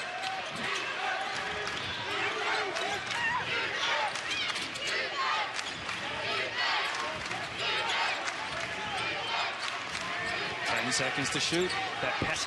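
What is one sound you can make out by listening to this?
A crowd murmurs throughout a large echoing arena.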